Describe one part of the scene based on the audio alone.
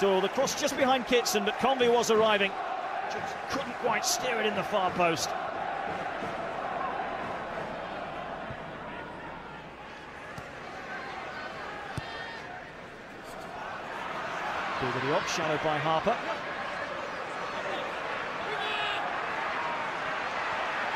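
A large crowd murmurs and chants steadily in an open stadium.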